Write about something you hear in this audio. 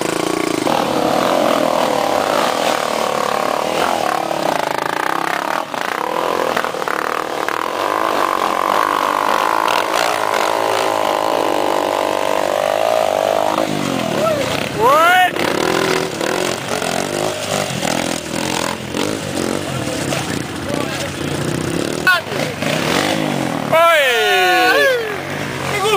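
Dirt bike engines rev and roar loudly up close, rising and falling in pitch.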